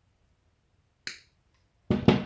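Pliers snip through a thin wire with a sharp click.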